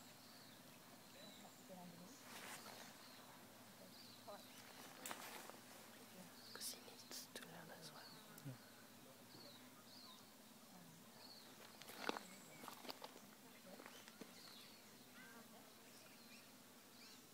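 Branches and dry grass rustle and snap as people push through dense brush.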